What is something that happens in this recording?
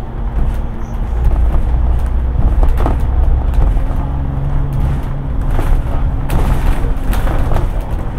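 Traffic passes on a city street.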